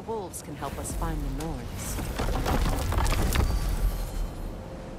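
A heavy wooden door creaks and thuds open.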